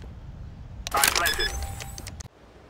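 A bomb beeps as it is defused.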